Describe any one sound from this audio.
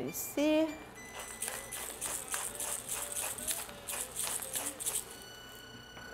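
A pepper mill grinds in quick bursts.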